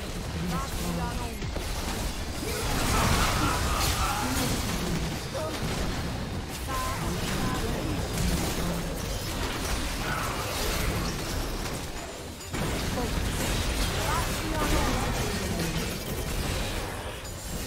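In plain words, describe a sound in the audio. Spell blasts and hits crackle and burst in a video game battle.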